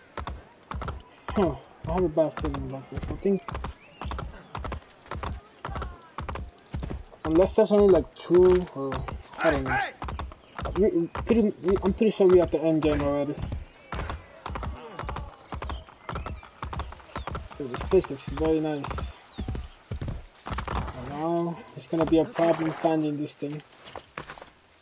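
A horse gallops with quick, steady hoofbeats on stone.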